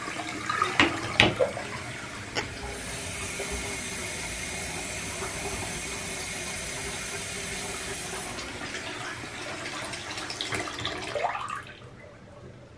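Water from a tap splashes into a basin full of water.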